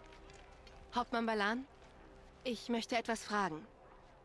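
A young woman speaks calmly.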